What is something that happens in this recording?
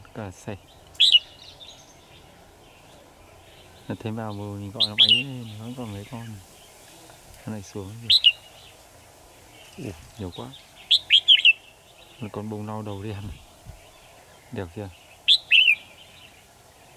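Small birds chirp in short, sharp calls outdoors.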